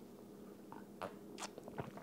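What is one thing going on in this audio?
A young man sips from a mug.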